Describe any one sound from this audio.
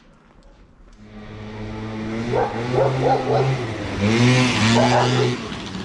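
A motor scooter engine hums up close and revs.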